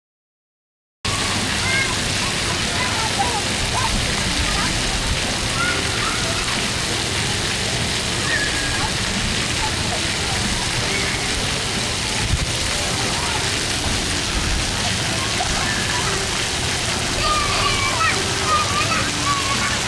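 Water from fountain jets splashes steadily onto the ground.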